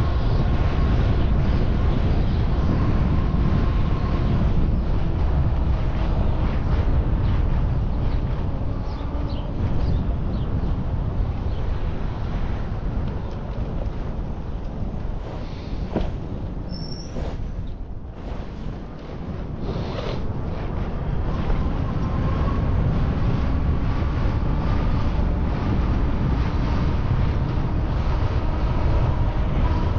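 Wind rumbles across a microphone outdoors, strong and gusty.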